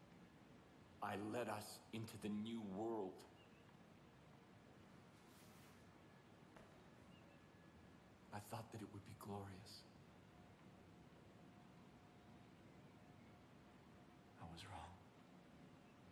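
A man speaks slowly and gravely, close by.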